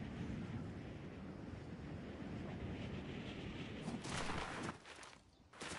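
Wind rushes past steadily during a glide.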